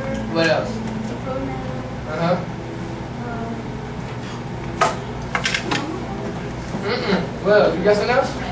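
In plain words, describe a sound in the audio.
A man speaks calmly to a class.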